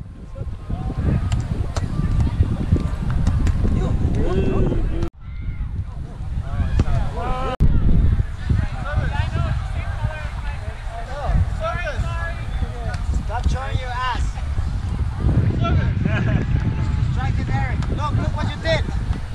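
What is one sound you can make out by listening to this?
A volleyball is struck with dull thuds.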